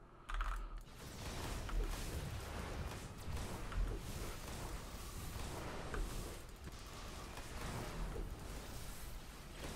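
Electric energy blasts crackle and zap in quick succession.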